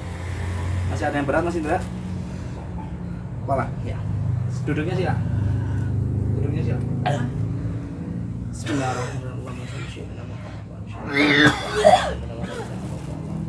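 A man speaks briefly in short bursts close by.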